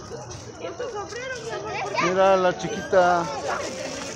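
A young child calls out loudly in a high, sing-song voice close by.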